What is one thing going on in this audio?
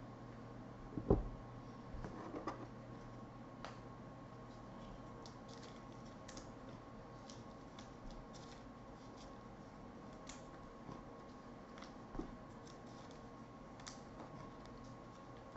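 Trading cards rustle and click as a hand handles them.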